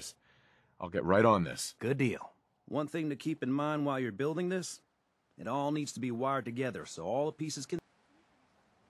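A man speaks calmly and clearly, close up.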